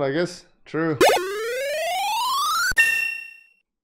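A retro video game plays a rising electronic tone as an experience bar fills.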